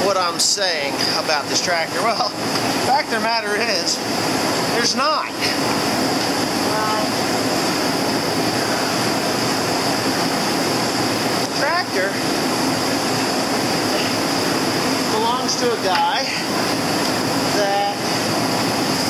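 A man talks casually close by, in short bursts.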